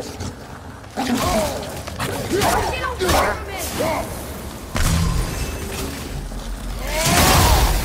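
A beast snarls and howls.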